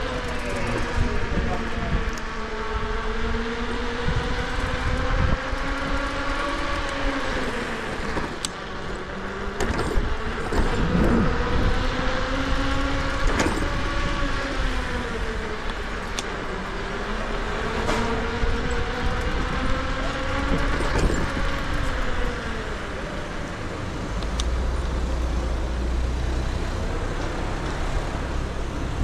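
An electric motor whines, rising and falling in pitch as the ride speeds up and slows down.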